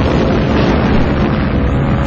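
Explosions boom in a row.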